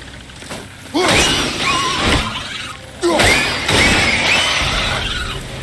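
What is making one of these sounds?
A winged creature lets out shrill shrieks.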